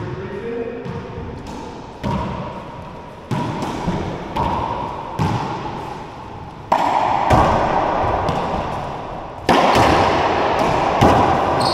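Sneakers squeak and shuffle on a wooden floor.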